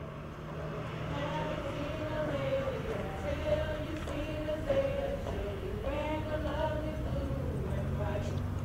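Young women sing together nearby.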